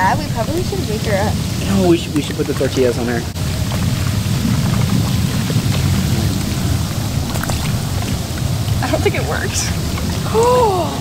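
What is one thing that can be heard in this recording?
A young woman talks and laughs excitedly close by.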